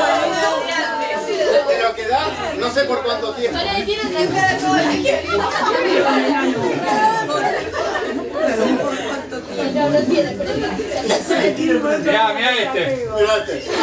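Several people talk and chatter over one another nearby, indoors.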